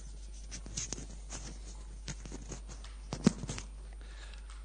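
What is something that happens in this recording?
A microphone rustles and clicks as it is handled.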